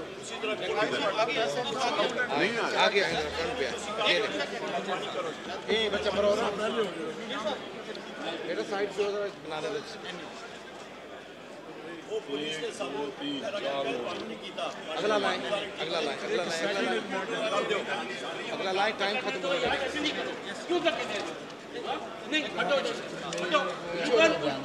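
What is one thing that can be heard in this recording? Many men talk at once in a large echoing hall.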